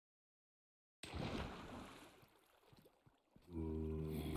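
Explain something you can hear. Water splashes and flows.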